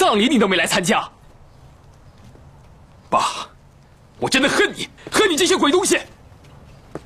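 A young man speaks angrily and close by.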